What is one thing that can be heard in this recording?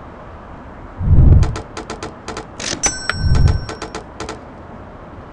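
A short game jingle plays with bright chimes.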